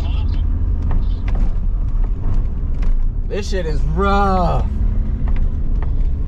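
Tyres crunch and bump over packed snow.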